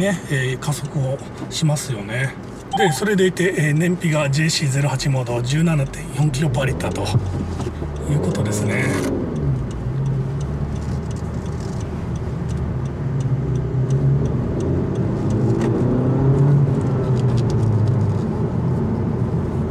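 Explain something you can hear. A car engine hums and revs as the car speeds up.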